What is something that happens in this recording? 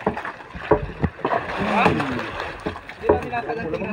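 A fish thrashes and thumps against a wooden boat.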